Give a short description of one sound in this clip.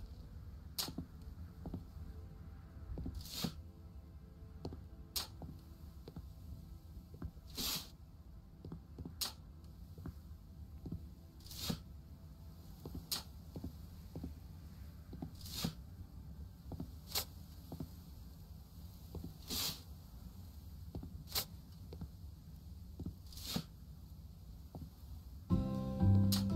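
A shovel scrapes into a pile of sand again and again.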